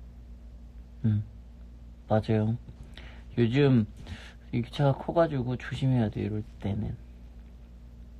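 A young man speaks softly and casually, close to a phone microphone.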